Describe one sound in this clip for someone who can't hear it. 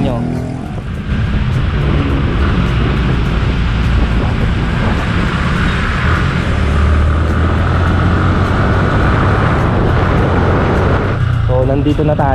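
Wind rushes past loudly as the motorcycle picks up speed.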